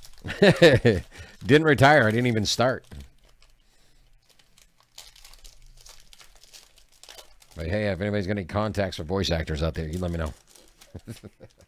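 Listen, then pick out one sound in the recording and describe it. A foil wrapper crinkles and tears as hands pull it open.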